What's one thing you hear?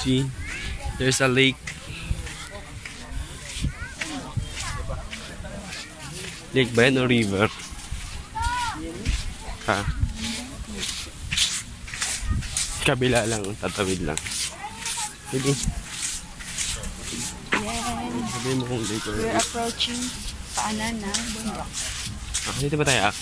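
A young man talks close to the microphone with animation.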